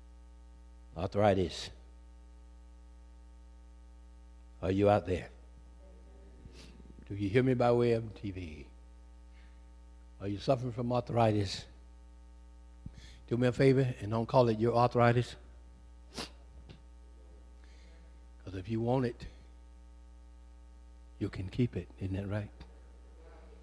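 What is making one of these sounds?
A man speaks slowly and forcefully into a microphone, in short phrases with pauses, heard through a loudspeaker.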